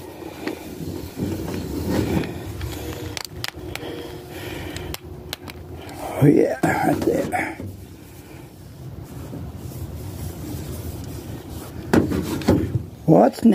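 A hand rubs a sticker flat against a wooden board with soft scraping.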